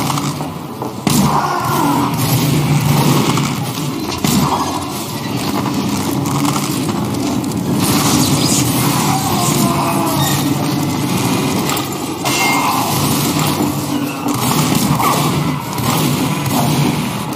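A bow twangs as arrows are loosed.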